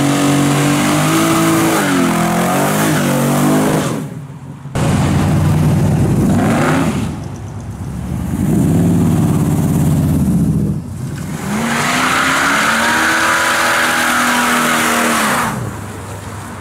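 Tyres screech and squeal on asphalt.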